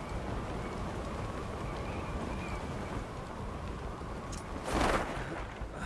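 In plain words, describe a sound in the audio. Wind rushes steadily past a parachutist gliding down.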